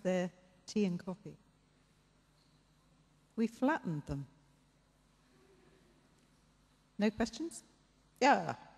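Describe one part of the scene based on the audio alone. A woman speaks into a microphone over a loudspeaker in a large echoing hall, in short bursts with pauses.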